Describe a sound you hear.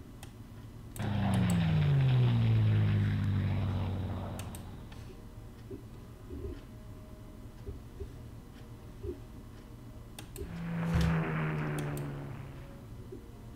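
A tank engine roars and rumbles, then fades away.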